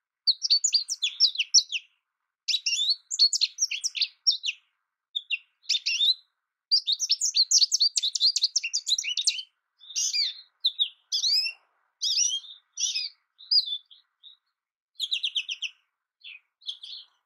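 A small bird sings a quick, twittering song in bursts close by.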